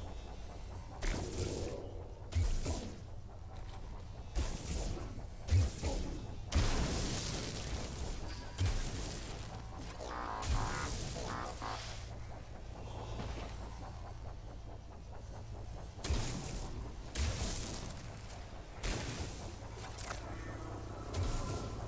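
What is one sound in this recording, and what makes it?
A gun fires in loud bursts with booming blasts.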